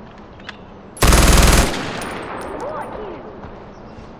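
A rifle fires a loud burst that echoes away.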